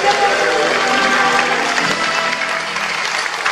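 A choir of women sings together in a large echoing hall, then the last notes ring out and fade.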